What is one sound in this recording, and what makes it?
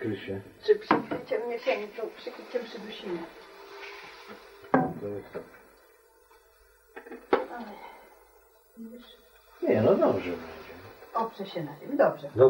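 An elderly woman talks with animation close by.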